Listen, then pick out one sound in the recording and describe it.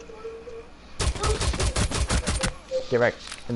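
A pistol fires a rapid burst of loud shots.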